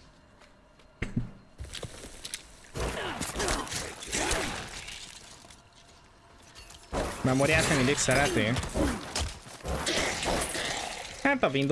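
Game combat sounds clash and thud.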